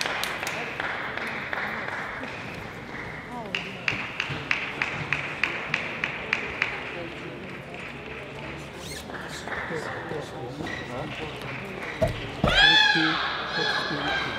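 Table tennis balls click on tables and bats in a large echoing hall.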